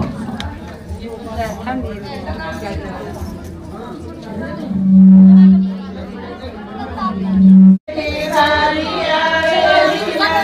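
Women sing together nearby.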